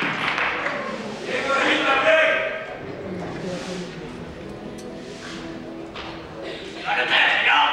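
A group of men and women sings together on stage.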